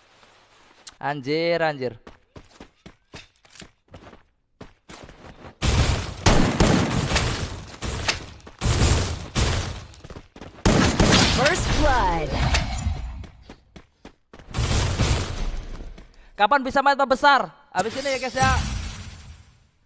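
A boy talks with excitement close to a microphone.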